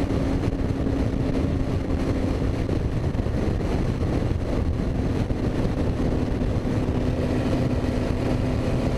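A race car engine drones loudly and steadily close by.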